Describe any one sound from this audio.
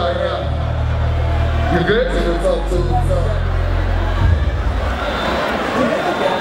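Loud music with a heavy bass beat plays through loudspeakers.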